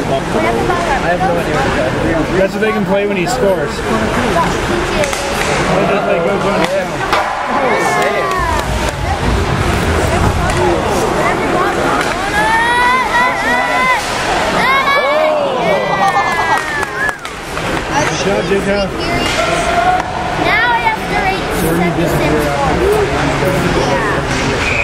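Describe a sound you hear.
Skates scrape and hiss across ice.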